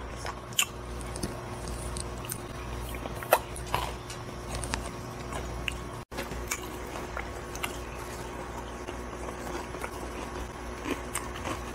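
A man chews and crunches softly close by.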